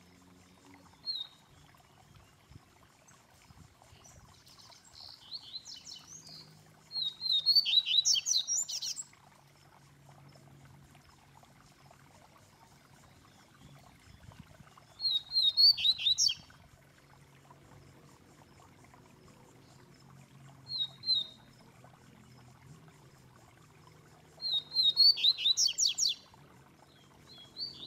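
A caged songbird sings bright, rapid trills in short bursts close by.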